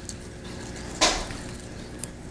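A small metal pin clicks into place.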